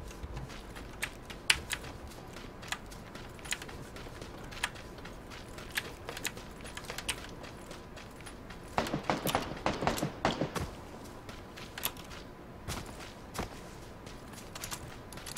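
Footsteps thud quickly on the ground as a figure runs.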